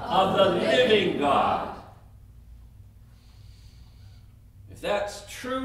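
An older man speaks calmly through a microphone, pausing between phrases.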